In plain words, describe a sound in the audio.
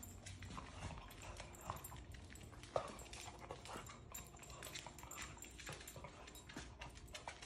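A dog's paws patter and click on a wooden floor.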